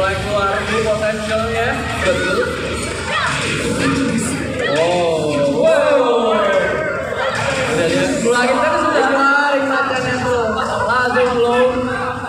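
Video game punches and kicks thud over loudspeakers.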